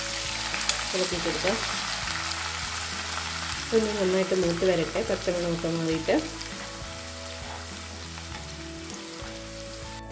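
A spatula scrapes and stirs in a pan.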